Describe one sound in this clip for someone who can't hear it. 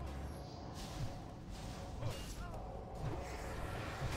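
Magic spells crackle and whoosh in a fight.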